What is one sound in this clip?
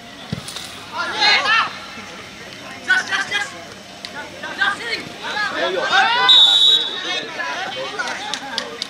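Young men shout outdoors across an open field.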